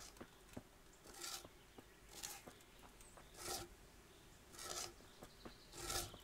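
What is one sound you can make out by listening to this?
A hand saw cuts wood in slow, even strokes.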